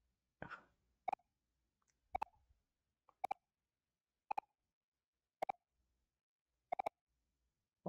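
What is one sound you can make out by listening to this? Short electronic blips sound one at a time at a steady pace.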